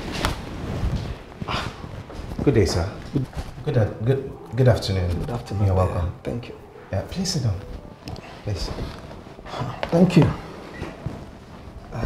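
A man speaks warmly and with animation nearby.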